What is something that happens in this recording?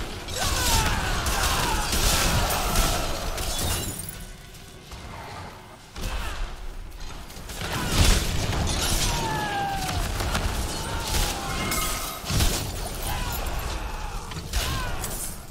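Spells crackle and explode in fast game combat.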